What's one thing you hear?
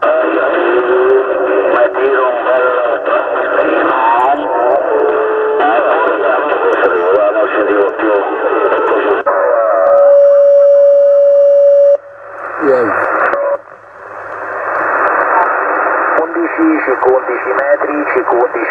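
Distorted voices talk over a crackling radio loudspeaker.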